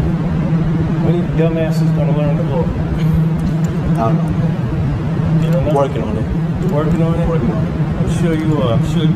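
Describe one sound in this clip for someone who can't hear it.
A man speaks nearby in short, firm phrases.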